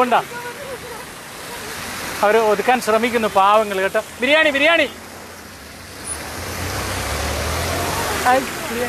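Car tyres hiss on a wet road as traffic passes.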